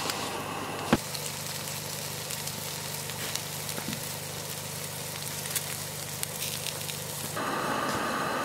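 Embers crackle under a grill.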